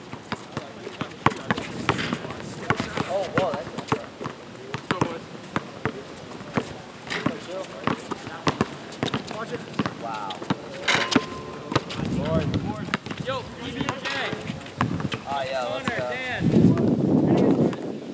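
Young men call out to each other during play, outdoors.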